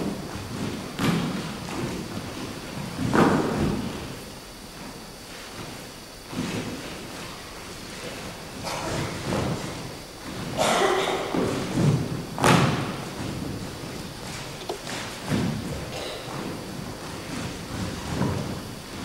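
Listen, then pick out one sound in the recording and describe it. Dancers' feet thump and shuffle on a wooden stage floor.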